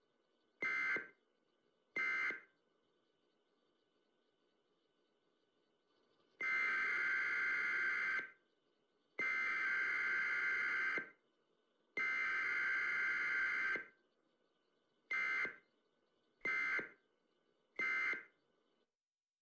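An emergency broadcast alert tone sounds in short beeps and long blasts.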